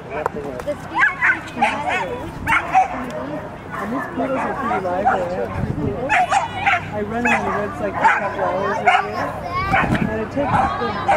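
A woman calls out commands to a dog with animation.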